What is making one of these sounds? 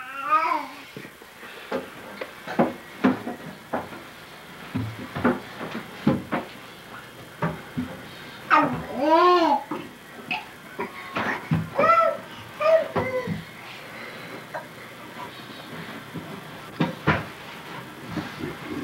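A woman talks nearby in a high, coaxing voice.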